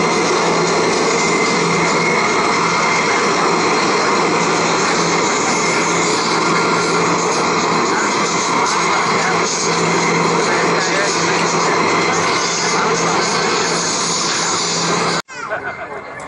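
Jet engines roar loudly.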